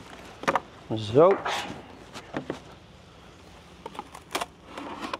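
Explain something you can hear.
Wooden boxes knock and scrape close by.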